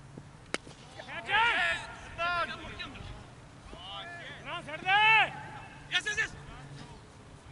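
Men shout excitedly at a distance outdoors.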